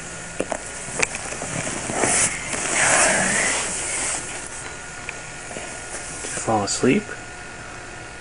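A young boy talks close by, sleepily at first and then with more animation.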